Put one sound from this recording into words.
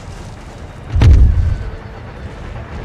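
A cannon fires with a loud, deep boom that rumbles away.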